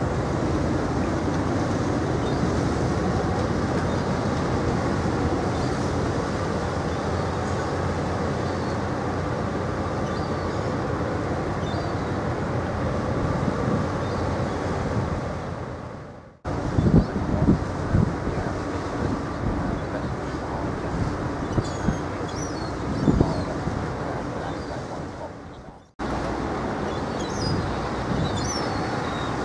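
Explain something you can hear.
A ship's engine rumbles low and steady nearby.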